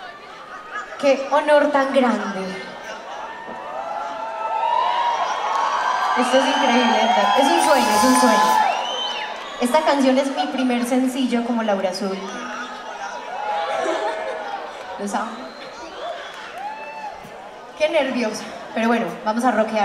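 A young woman sings loudly through a microphone over loudspeakers in a large hall.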